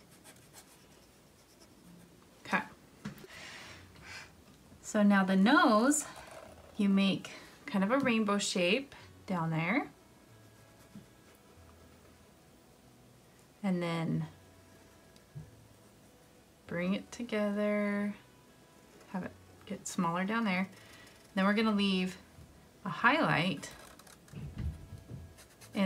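Felt-tip markers squeak and scratch softly on paper.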